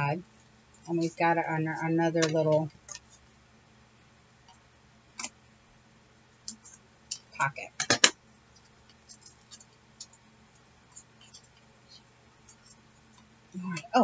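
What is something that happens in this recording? Paper pages rustle and crinkle as they are handled and turned.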